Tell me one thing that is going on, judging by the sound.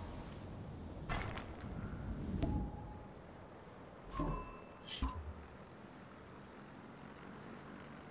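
A magical spell whooshes and shimmers.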